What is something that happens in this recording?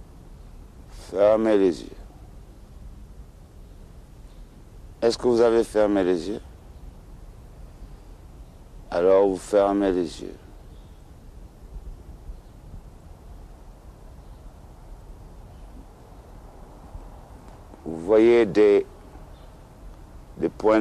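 A middle-aged man speaks slowly and calmly in short phrases, close by.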